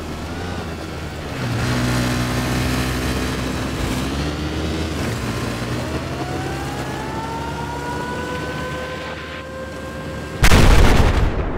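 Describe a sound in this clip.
A motorcycle engine roars and revs up and down.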